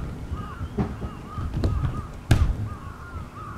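A body thumps onto an inflated cushion.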